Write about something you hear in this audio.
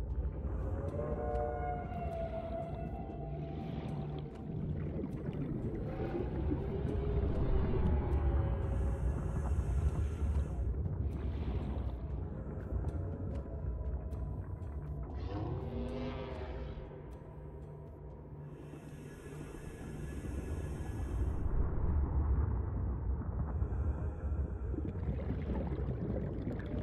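A deep underwater rumble drones steadily throughout.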